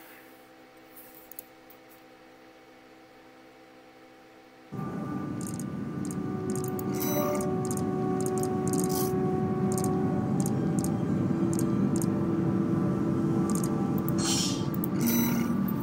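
Short menu blips click now and then.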